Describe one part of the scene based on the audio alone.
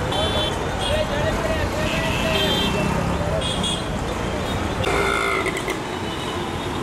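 Vehicle horns honk repeatedly in short beeps.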